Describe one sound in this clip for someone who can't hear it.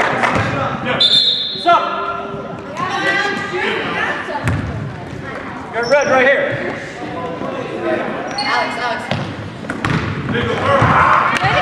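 Adult spectators call out and cheer in an echoing gym.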